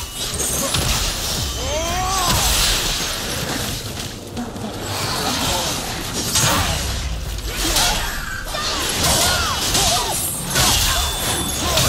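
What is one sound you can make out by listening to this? Flames burst and crackle.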